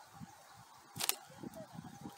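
A slingshot snaps sharply as it is released.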